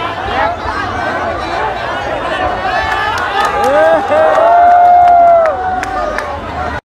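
A large crowd of young men chatters and shouts excitedly outdoors.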